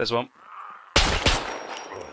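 A rifle fires a single loud shot close by.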